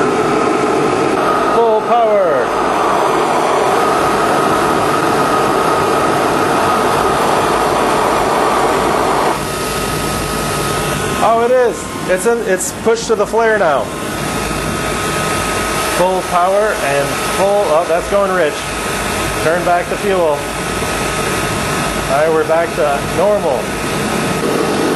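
A burner flame roars steadily.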